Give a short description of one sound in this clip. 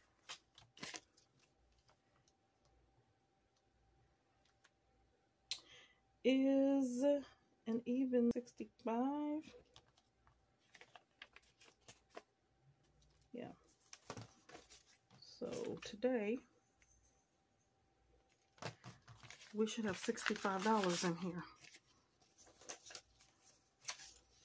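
Paper money rustles as it is handled.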